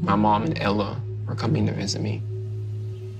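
A young man speaks quietly and calmly, close by.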